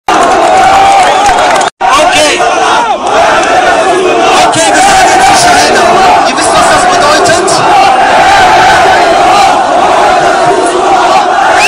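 A large crowd outdoors cheers and shouts loudly.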